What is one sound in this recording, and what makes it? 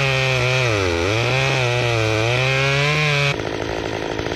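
A chainsaw engine runs loudly, its pitch dipping and rising.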